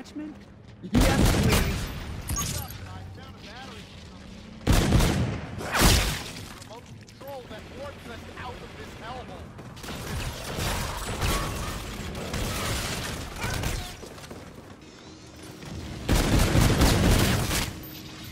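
Bursts of automatic rifle fire ring out in a video game.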